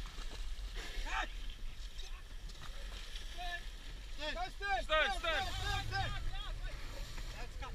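Water splashes and sprays beside a small boat.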